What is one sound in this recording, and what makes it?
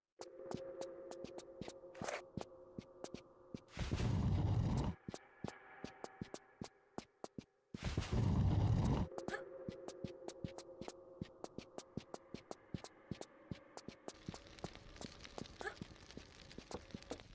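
Quick footsteps patter steadily on a hard floor.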